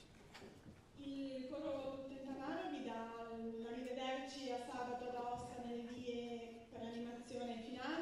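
A middle-aged woman sings slowly and clearly into a microphone.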